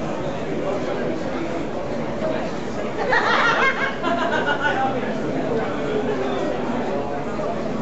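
A crowd of people chatters all around, close by.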